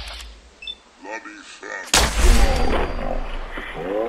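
A gun fires with loud bangs.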